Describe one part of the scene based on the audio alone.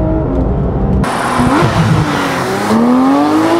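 A sports car accelerates past outdoors with a loud, rising engine roar.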